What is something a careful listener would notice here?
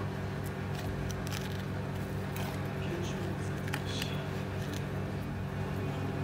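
A battered corn dog rustles and scrapes as it rolls through coarse sugar.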